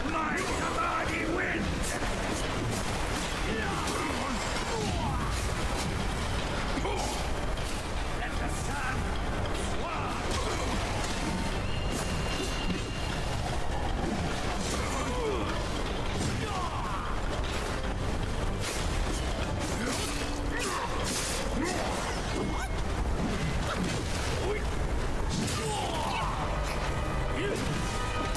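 Weapons clash and whoosh in a fight.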